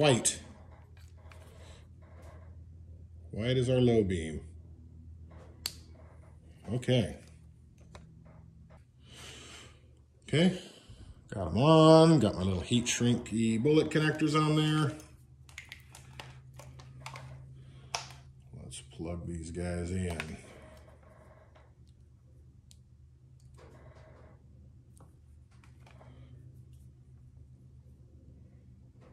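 Plastic wire connectors click and rustle as they are handled.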